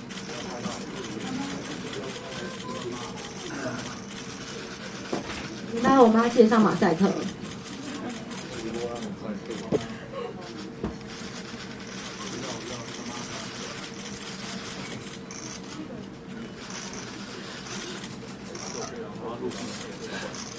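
A young woman sobs quietly.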